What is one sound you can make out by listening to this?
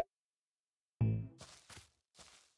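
A low thud sounds.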